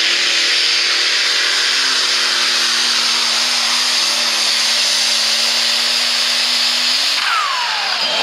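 A tractor engine roars loudly and steadily, then cuts out.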